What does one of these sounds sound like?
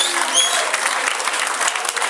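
A man claps his hands.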